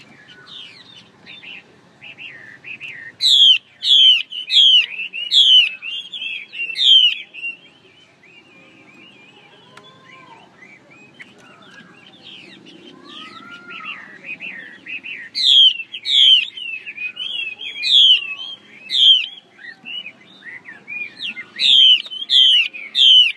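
A songbird sings loud, rapid whistling phrases close by.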